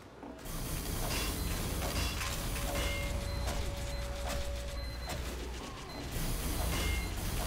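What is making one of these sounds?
A wrench clangs repeatedly against a metal machine.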